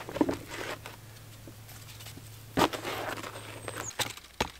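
A tarp rustles and crinkles as it is handled.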